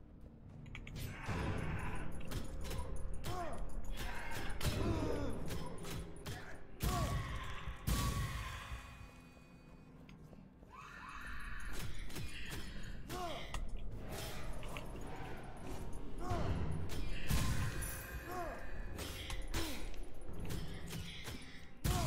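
Blades slash and swoosh in quick bursts.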